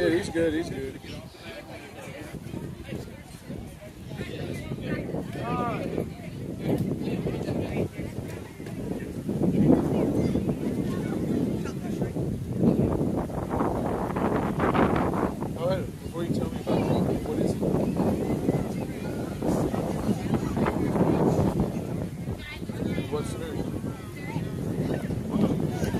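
Several men and children talk and call out nearby outdoors.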